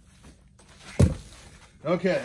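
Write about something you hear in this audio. A heavy log thumps down onto the ground.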